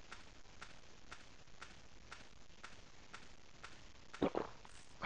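Footsteps tap steadily on a dirt path.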